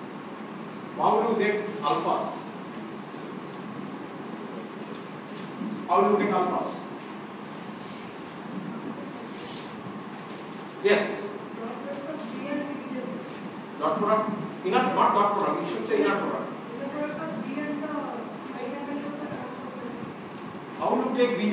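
A man speaks with animation, lecturing.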